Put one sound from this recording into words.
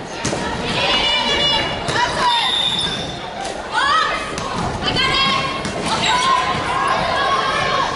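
A volleyball thuds off players' arms and hands.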